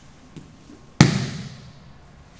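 A body thumps onto a padded mat.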